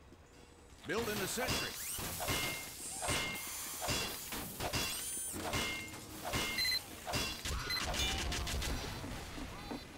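A wrench clangs repeatedly against metal.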